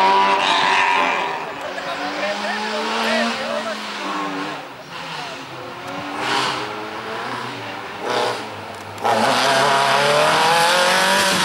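A rally car engine revs hard and roars past up close.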